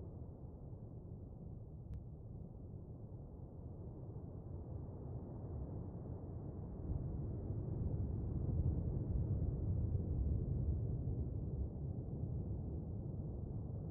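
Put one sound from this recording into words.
A submarine's engine rumbles low and steady underwater, growing louder.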